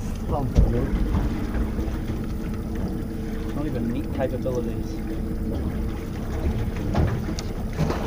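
Water swirls and bubbles underwater.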